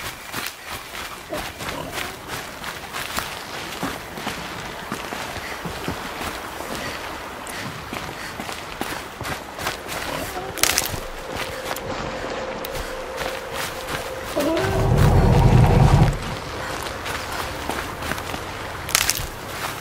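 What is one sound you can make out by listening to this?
Footsteps rustle through dense, leafy plants.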